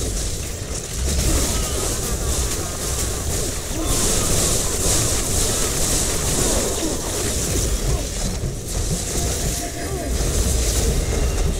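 Fiery blasts roar and crackle loudly.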